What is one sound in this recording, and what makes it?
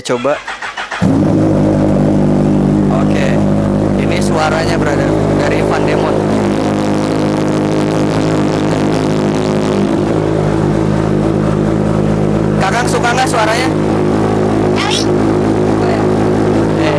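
A motorcycle engine starts and idles with a steady rumble.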